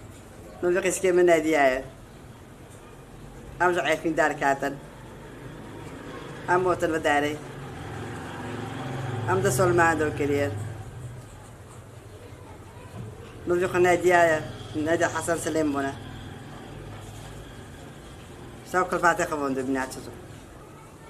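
A middle-aged woman speaks calmly and close by, in short phrases with pauses.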